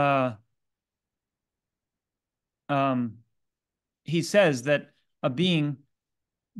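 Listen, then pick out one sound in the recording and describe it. A man lectures calmly, heard through an online call.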